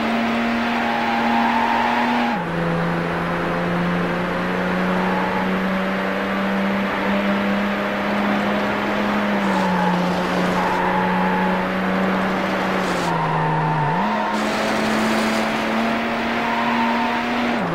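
Tyres screech through a bend.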